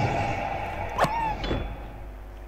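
A pig squeals sharply.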